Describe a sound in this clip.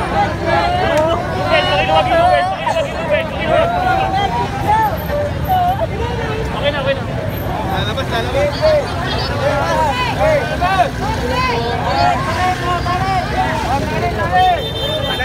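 Men and women in the crowd cheer and shout with excitement.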